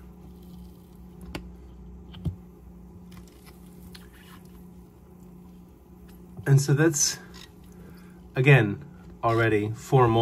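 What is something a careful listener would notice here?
A spatula squishes a soft, gooey egg with wet squelching sounds.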